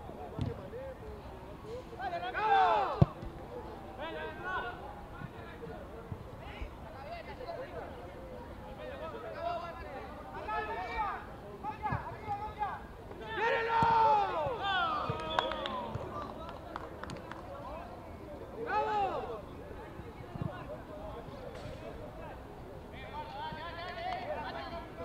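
Young men shout and call out across an open outdoor pitch.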